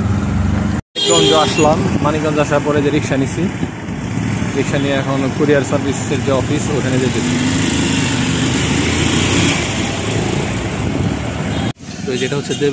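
Traffic noise fills an open street outdoors.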